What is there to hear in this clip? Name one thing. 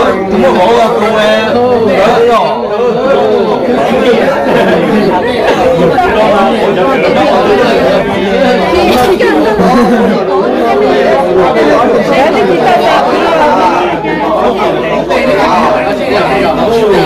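A crowd of men and women talk loudly all at once, close by.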